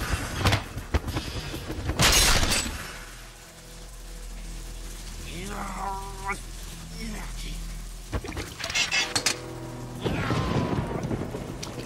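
Heavy rain pours down and hisses.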